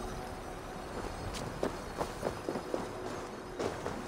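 Footsteps crunch over loose stones.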